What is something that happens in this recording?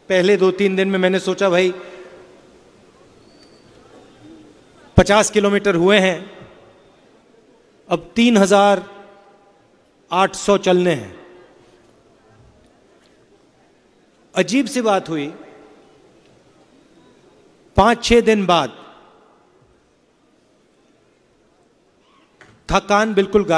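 A man speaks into a microphone over loudspeakers in short, emphatic bursts with pauses, echoing outdoors.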